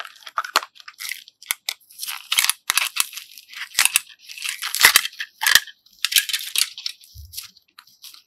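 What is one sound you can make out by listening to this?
Soft clay squishes and crinkles as fingers squeeze it.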